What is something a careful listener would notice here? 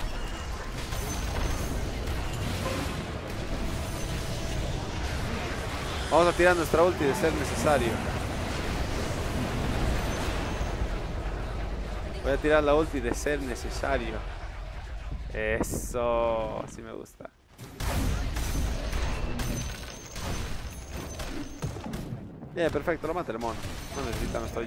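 Spells blast and weapons clash in a busy game battle.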